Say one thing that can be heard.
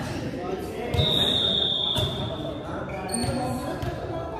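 Sneakers squeak sharply on a court floor.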